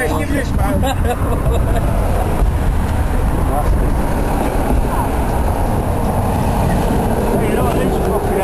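Several men talk and laugh close by, outdoors.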